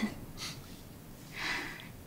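A young woman laughs softly, close by.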